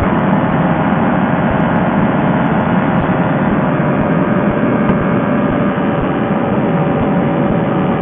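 A small aircraft engine drones steadily and loudly.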